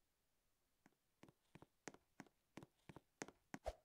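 Quick light footsteps patter as a game figure runs.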